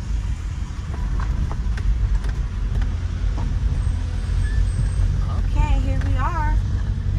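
A car engine rumbles steadily inside a moving vehicle.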